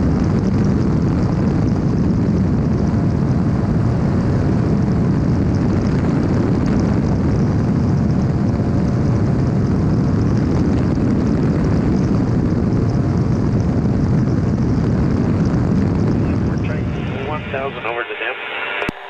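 Wind rushes hard past the microphone.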